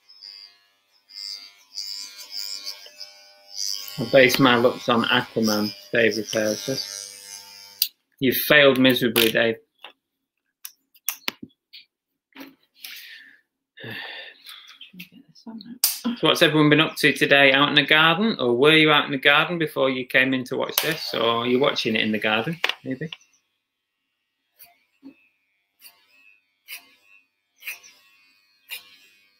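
Scissors snip through hair close by.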